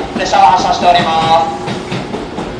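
Train brakes squeal shrilly.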